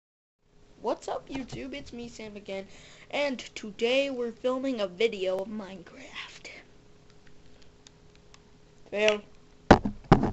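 A young girl speaks with animation close to a microphone.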